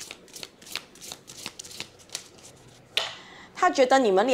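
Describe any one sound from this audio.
A card slides softly onto a pile of cards.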